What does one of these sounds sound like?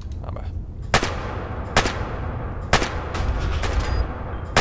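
Gunshots ring out several times in quick succession.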